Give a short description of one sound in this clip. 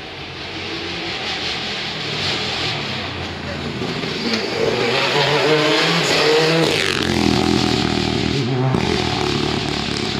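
A rally car engine roars louder as the car approaches at speed, then drops in pitch as it races past.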